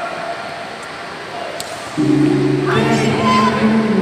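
A fighter's body thuds onto a padded mat in a large hall.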